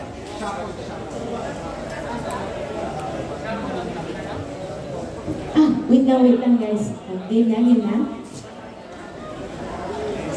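Music plays through loudspeakers in a large echoing hall.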